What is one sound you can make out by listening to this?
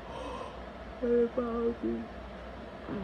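A young woman moans softly close by.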